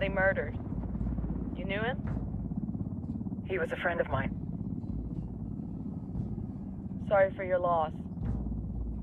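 A woman speaks quietly over a headset.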